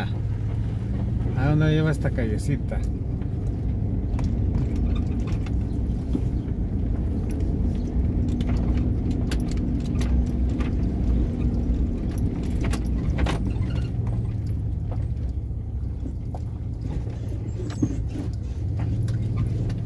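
Tyres rumble and crunch over a dirt road.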